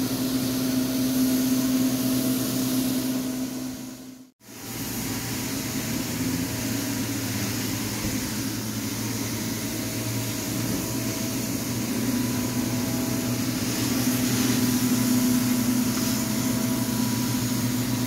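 A carpet cleaning machine whines and roars loudly and steadily as it sucks water from carpet.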